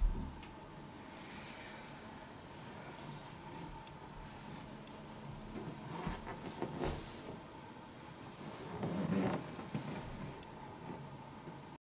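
A towel rustles softly against a pillow.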